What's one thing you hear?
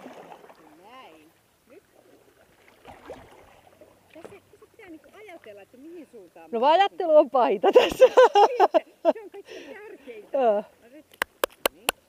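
A paddle dips and splashes in water.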